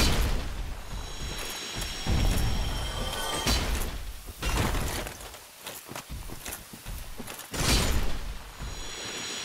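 Magic crystal bursts shatter with a glittering ringing.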